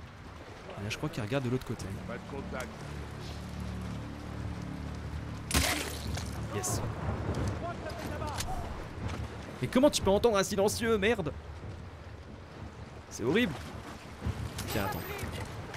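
Footsteps splash softly through shallow water.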